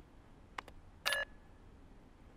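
An electronic error tone buzzes briefly.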